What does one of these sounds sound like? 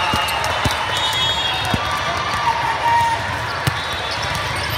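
A volleyball is struck with a thud.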